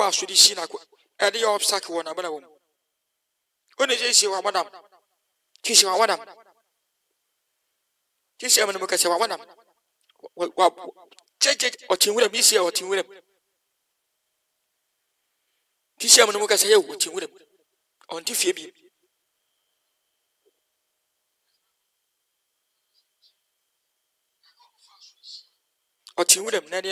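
A young man speaks with animation in bursts, heard through an online call.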